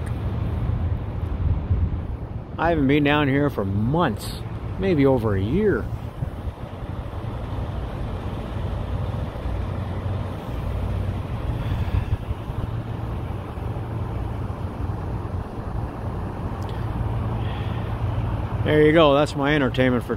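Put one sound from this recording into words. A large truck's diesel engine idles with a low, steady rumble close by.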